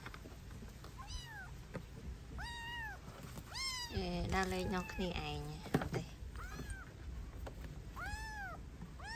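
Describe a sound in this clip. A kitten meows repeatedly in high, thin cries.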